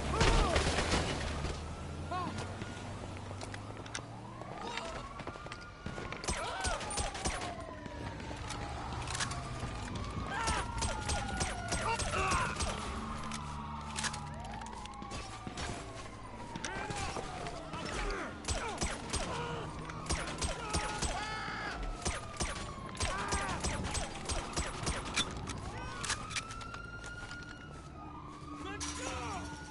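Police sirens wail up and down nearby.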